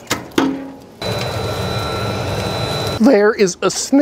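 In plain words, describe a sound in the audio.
A battery blower whirs loudly.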